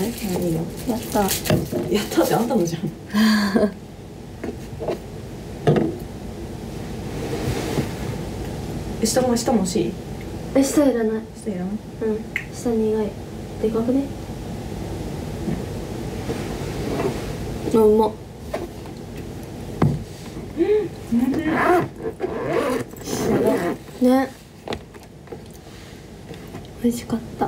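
A young woman talks casually, close to a microphone.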